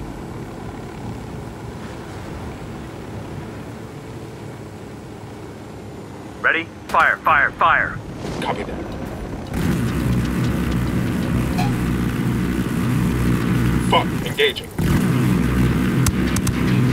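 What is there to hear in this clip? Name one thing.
A helicopter's rotors and engine drone steadily, growing louder partway through.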